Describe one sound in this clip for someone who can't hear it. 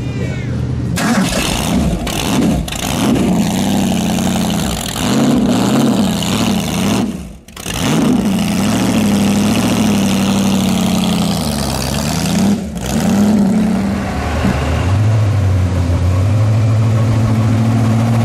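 A car engine revs loudly up and down.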